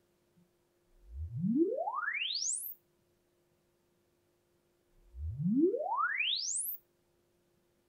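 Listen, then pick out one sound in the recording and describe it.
A loudspeaker plays a quick rising test tone, twice.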